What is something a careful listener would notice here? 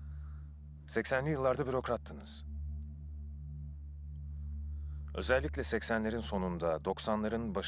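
A young man speaks close.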